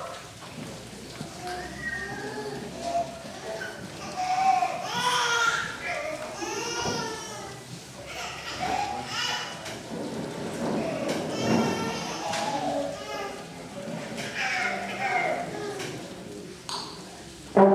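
A small acoustic ensemble plays a tune.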